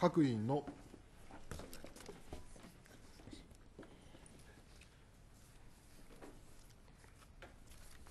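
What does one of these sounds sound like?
Papers rustle close to a microphone.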